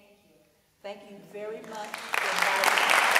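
Young women call out in a large echoing hall.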